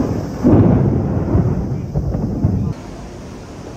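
Thunder rumbles loudly outdoors.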